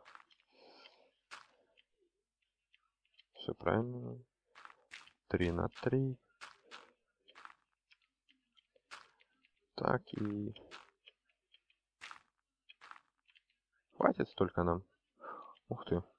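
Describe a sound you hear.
Dirt crunches in short bursts as blocks are dug out one after another.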